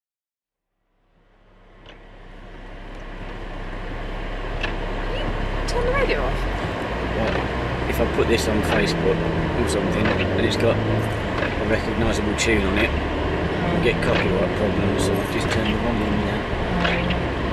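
A car engine hums low inside the cabin.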